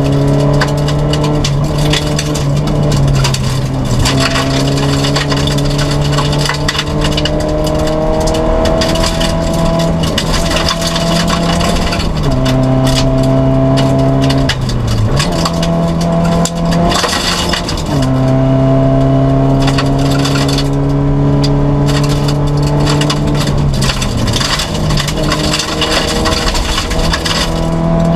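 A rally car engine roars loudly from inside the cabin, revving up and dropping as the gears shift.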